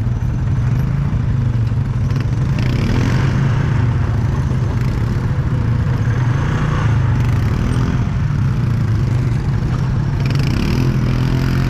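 A quad bike engine drones steadily up close.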